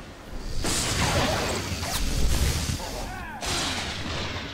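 A lightsaber hums and crackles as it strikes in a fight.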